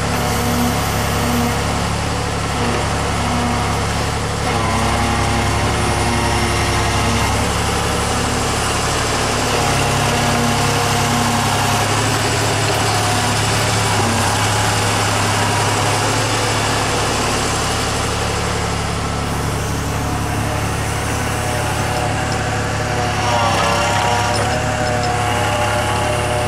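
A diesel excavator engine rumbles steadily and roars under load.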